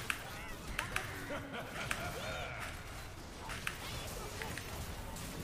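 Video game spell effects zap and crack in quick bursts.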